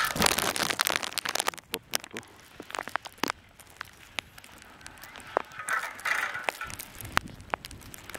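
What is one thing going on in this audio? Skis scrape and hiss over packed snow close by.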